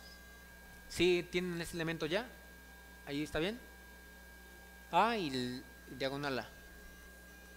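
A young man speaks in short bursts through a microphone, with pauses between.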